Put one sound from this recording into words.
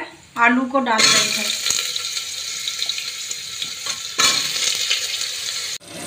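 Hot oil sizzles loudly in a metal pot.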